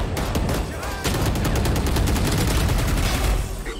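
Rapid gunshots fire in quick bursts.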